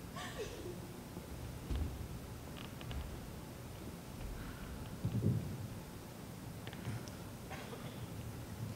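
A man speaks with feeling in a large hall.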